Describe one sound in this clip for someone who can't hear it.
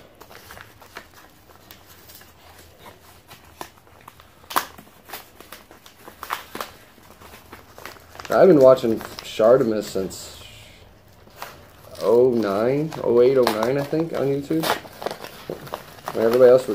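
Paper crinkles and rustles as a padded envelope is handled and torn open.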